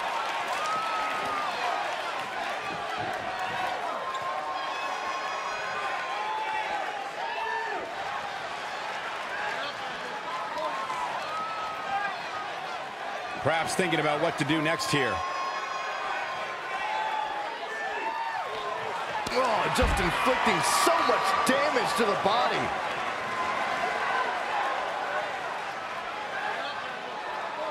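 A crowd cheers steadily in a large arena.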